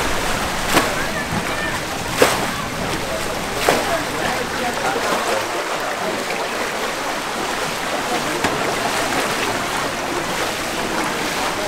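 Water sloshes and splashes as people wade through a flooded street.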